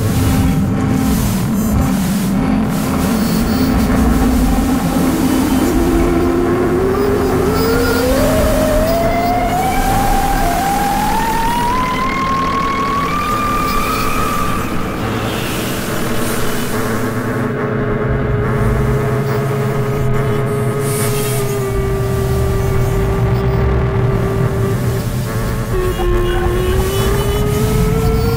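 Electronic synthesizer tones drone and slowly glide upward in pitch.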